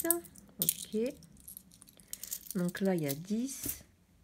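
Coins clink together in a hand.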